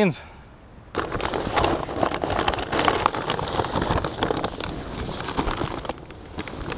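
Plastic sacks rustle and crinkle as they are shifted.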